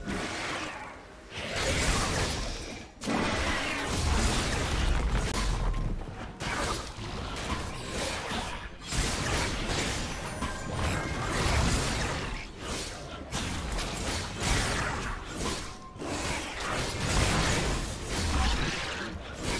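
Game attack and spell effects crackle and boom in quick bursts.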